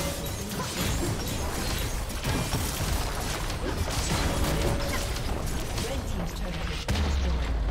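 Game spells and attacks crackle and burst in a busy battle.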